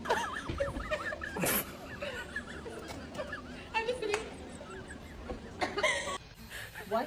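A woman laughs loudly close by.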